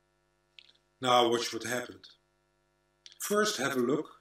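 An older man speaks calmly and earnestly over an online call.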